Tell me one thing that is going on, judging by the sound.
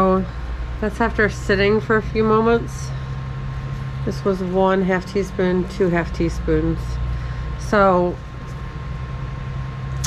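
A paper towel rustles.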